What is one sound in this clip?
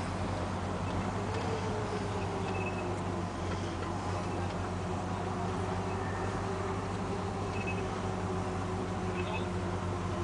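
Car engines rumble steadily at low speed close by.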